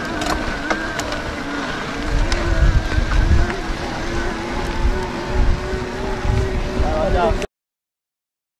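An electric bike motor whines steadily.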